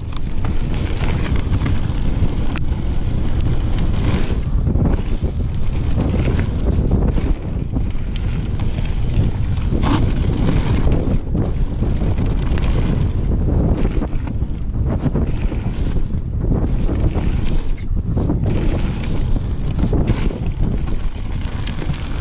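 A bicycle's frame and chain clatter over bumps.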